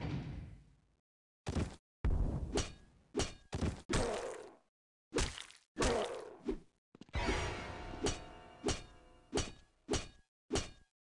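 A heavy axe swings and thuds into flesh again and again.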